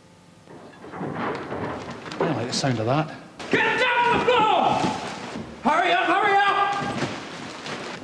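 A man speaks loudly and with animation, close by.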